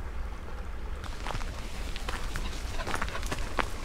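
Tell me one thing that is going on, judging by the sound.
A dog's paws patter along a dirt path.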